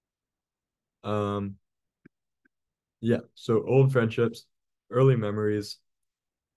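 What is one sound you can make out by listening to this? A man reads aloud calmly into a microphone, heard over an online call.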